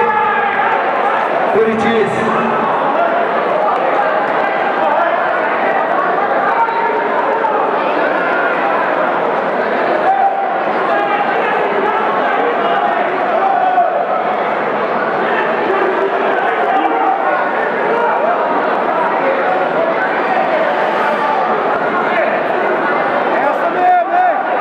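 A crowd of spectators shouts and cheers loudly, with many voices overlapping.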